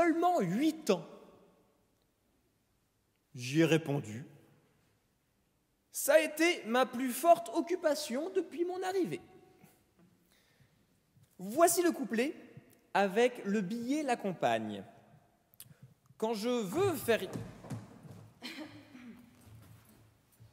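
A man speaks with expression into a microphone in a large echoing hall.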